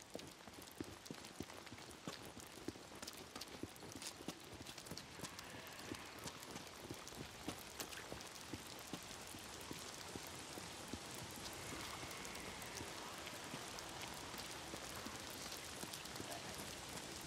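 Rain pours steadily outdoors.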